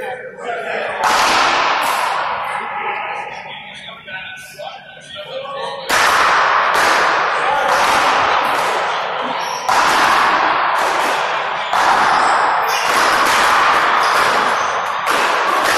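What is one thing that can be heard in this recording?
A rubber ball smacks loudly off paddles and walls, echoing in a large hall.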